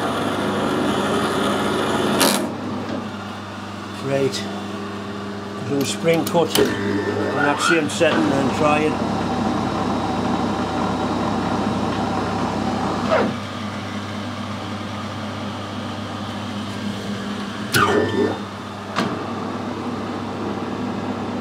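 A cutting tool scrapes and clatters against spinning metal.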